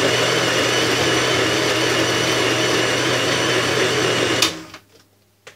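A blender whirs loudly, then switches off.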